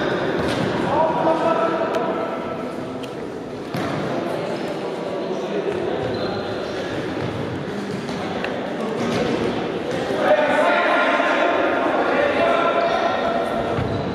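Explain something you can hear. Players' shoes squeak on a hard indoor floor in a large echoing hall.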